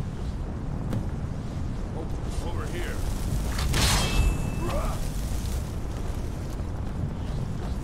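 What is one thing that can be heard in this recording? A magic barrier hums and crackles with energy.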